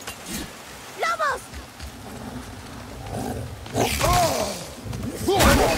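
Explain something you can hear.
A beast snarls and growls.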